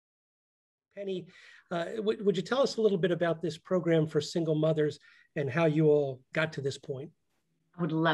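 An older man talks calmly over an online call.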